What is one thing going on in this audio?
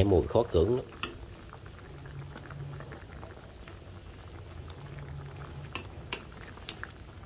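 A metal ladle clinks and scrapes against a pan.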